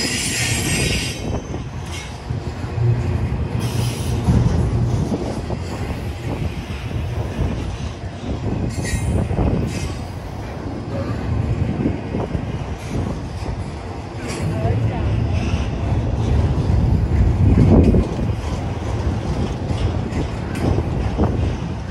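A long freight train rumbles past close by, its wheels clattering and squealing on the rails.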